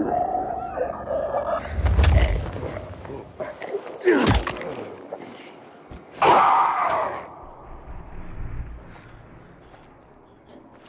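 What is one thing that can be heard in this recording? Heavy blows strike a body with dull thuds.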